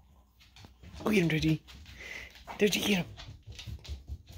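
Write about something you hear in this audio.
A puppy yelps in high-pitched bursts.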